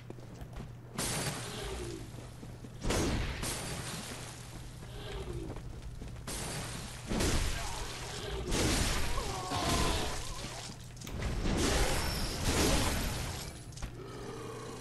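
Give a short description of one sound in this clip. A heavy blade swishes and slashes with loud impacts.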